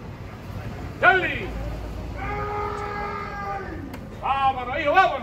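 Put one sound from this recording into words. Men in a crowd shout and call out loudly outdoors.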